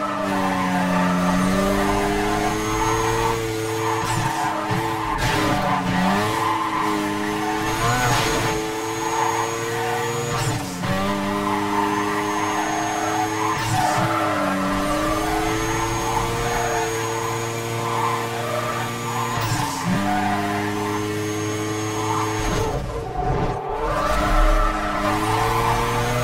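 Tyres screech on the road in a drift.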